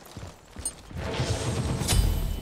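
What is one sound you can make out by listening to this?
Lightning zaps and crackles loudly.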